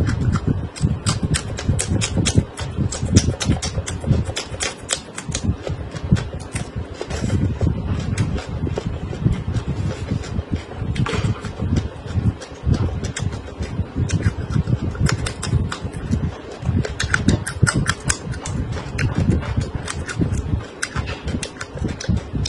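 A young woman chews and smacks her lips wetly close to a microphone.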